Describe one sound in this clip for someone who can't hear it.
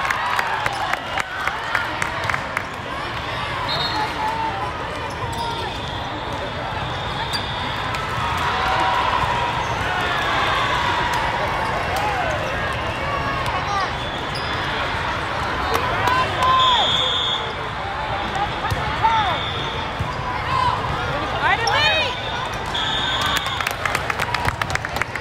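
A crowd chatters and calls out steadily in the background.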